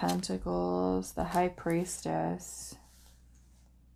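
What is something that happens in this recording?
Playing cards tap softly onto a wooden table.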